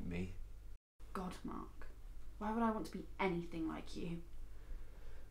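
A young woman speaks calmly nearby.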